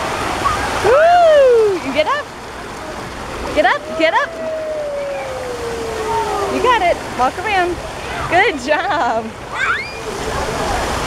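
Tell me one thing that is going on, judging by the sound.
A young child squeals and shrieks excitedly close by.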